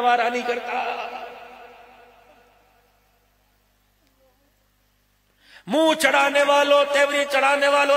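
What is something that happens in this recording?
An older man chants loudly through a microphone, with a long echo trailing off.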